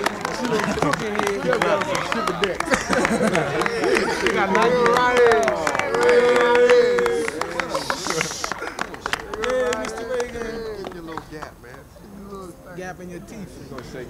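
A crowd of men, women and girls chatter and exchange greetings close by outdoors.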